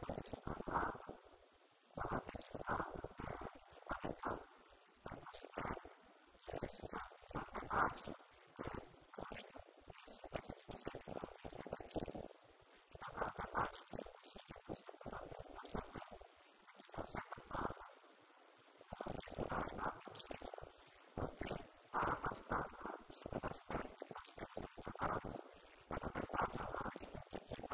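A man speaks calmly into a microphone, heard through a loudspeaker in an echoing room.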